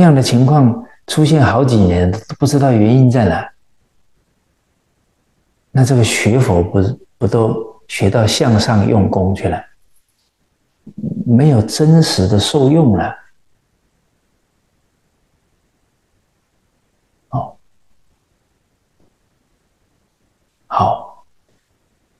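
A middle-aged man speaks calmly and with emphasis into a close microphone, pausing between phrases.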